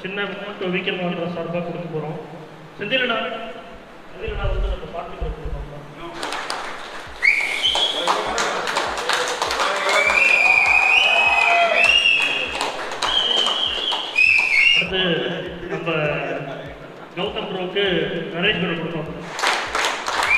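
A man speaks into a microphone through a loudspeaker.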